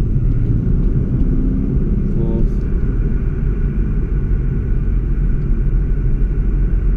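Wind buffets loudly around the open car.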